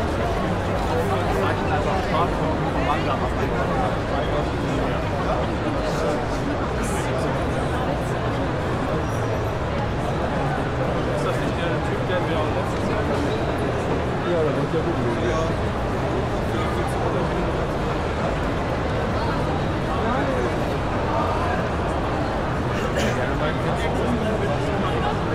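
A large crowd chatters steadily in a big echoing hall.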